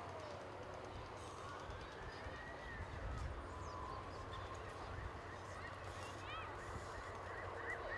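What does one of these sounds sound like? Horses' hooves thud softly on grass.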